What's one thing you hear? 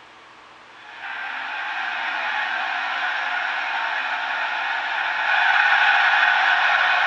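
A large crowd cheers and roars through a television speaker.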